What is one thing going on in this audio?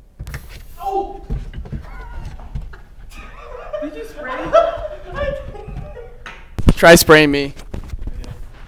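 A young man laughs loudly and excitedly.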